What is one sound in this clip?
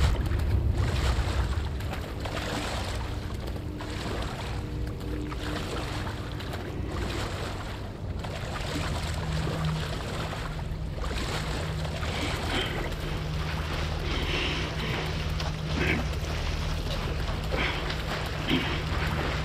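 Water sloshes as someone wades slowly through it.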